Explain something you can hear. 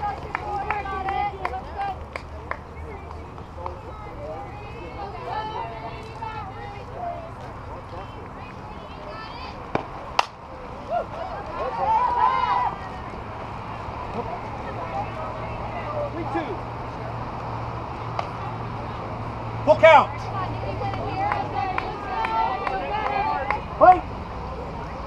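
Young women call out and cheer across an open field.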